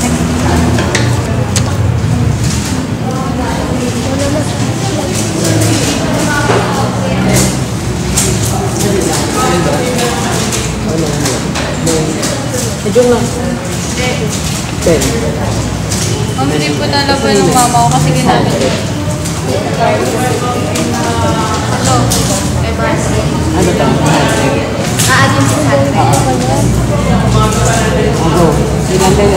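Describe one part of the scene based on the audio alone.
A crowd of young people chatter and talk over one another close by.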